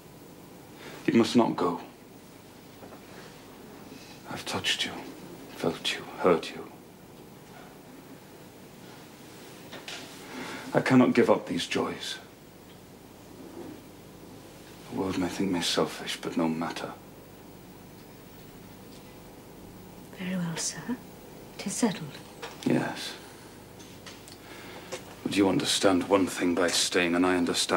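A man speaks quietly and intently, close by.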